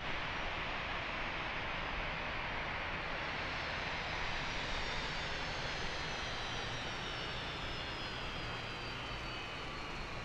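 Jet engines whine and roar steadily as an airliner taxis.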